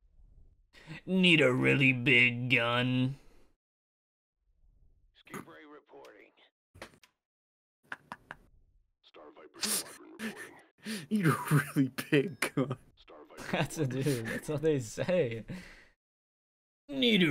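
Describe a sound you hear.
A second young man talks and laughs through a microphone.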